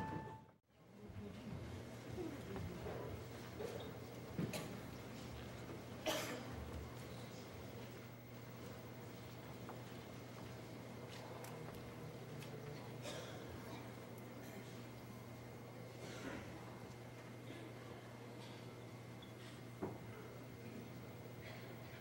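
An audience murmurs and chatters quietly in a large hall.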